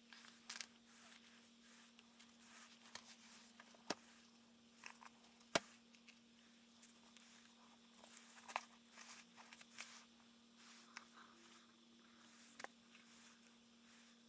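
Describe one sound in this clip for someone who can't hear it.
Paper rustles and pages flip as a book is handled.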